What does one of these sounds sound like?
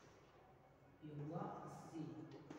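A man speaks calmly nearby, as if explaining.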